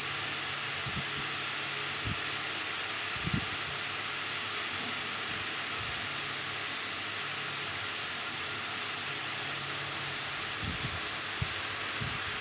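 Bare feet thud softly on a hard floor.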